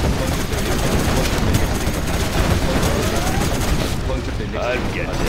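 Tank cannons fire in quick bursts.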